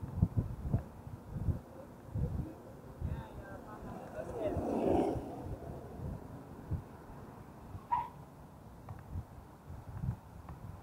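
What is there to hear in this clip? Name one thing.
Bicycle tyres roll over pavement with bumps and thuds.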